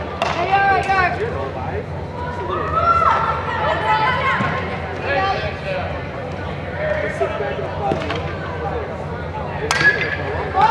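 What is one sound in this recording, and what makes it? Young women call out and cheer across a large echoing hall.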